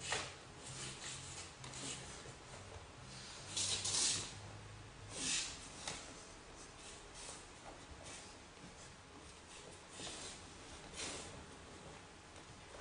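A martial artist's uniform swishes and snaps with fast strikes and kicks.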